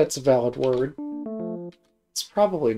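A short electronic chime of stepped tones sounds.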